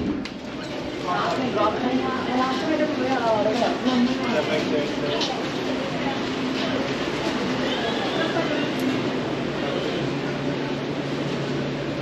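People chat in a busy echoing room.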